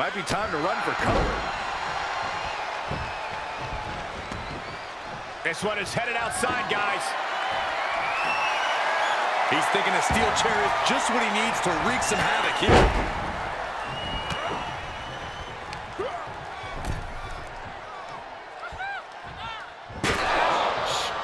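Heavy thuds sound as wrestlers hit the mat.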